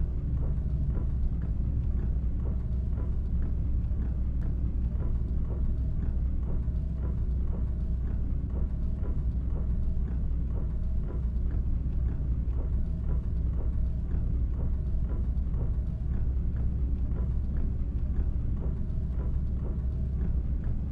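A bus engine drones steadily at low pitch.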